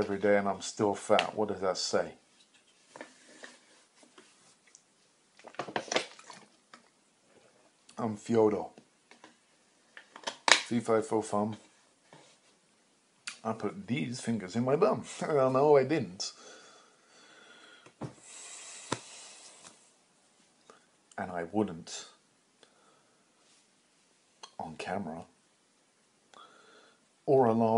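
A man talks calmly and close by, in bursts with pauses.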